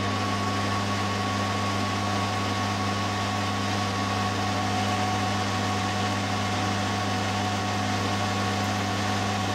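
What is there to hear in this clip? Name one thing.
A cutting tool scrapes and hisses against spinning metal.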